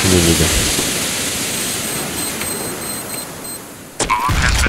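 Beeps sound as a bomb is armed in a game.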